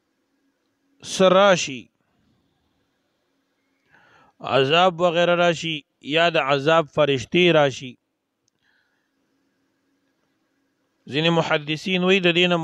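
A man recites in a slow, melodic chanting voice close to a microphone.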